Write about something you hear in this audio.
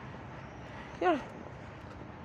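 A young woman speaks briefly and casually close by.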